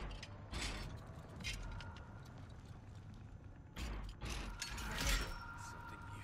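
Metal parts click and rattle under working hands.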